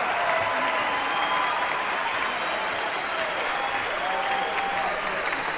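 An orchestra plays in a large echoing hall.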